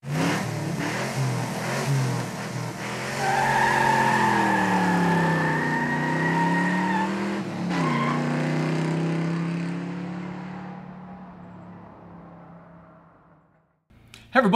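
An engine revs and then fades away.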